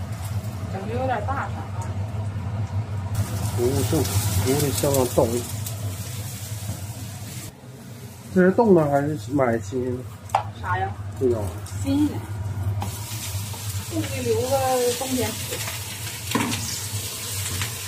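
A spatula scrapes and stirs in a metal wok.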